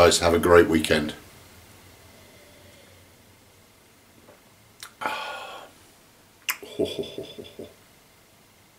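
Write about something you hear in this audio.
A middle-aged man speaks calmly and close by.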